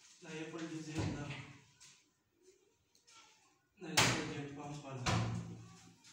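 A hand thumps against a wooden cabinet door.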